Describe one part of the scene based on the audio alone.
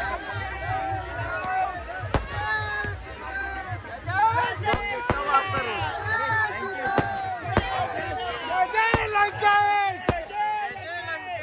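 A crowd of men and women shout and cheer loudly outdoors.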